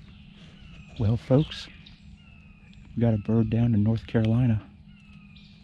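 A man speaks softly close by.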